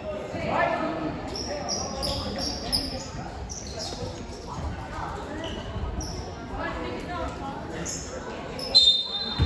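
Young players call out to each other in a large echoing gym.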